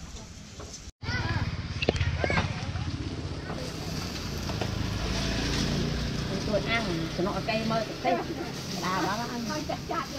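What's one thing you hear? Basted meat sizzles on a grill over charcoal.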